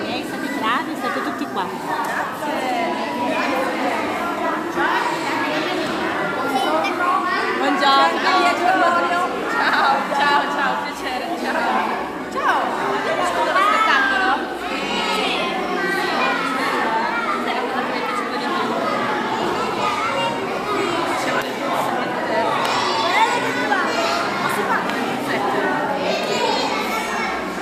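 A crowd of children and adults chatter loudly in an echoing hall.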